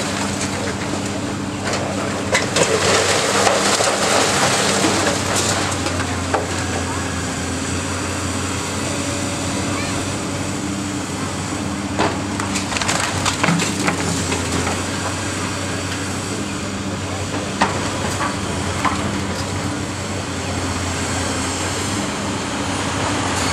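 A heavy excavator engine rumbles steadily.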